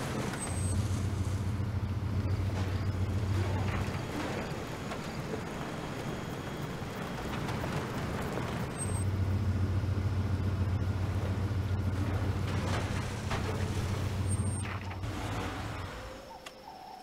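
A car engine hums low as it drives.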